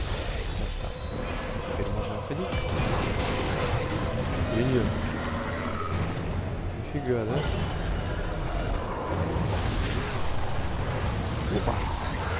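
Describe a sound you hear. A giant creature growls and roars.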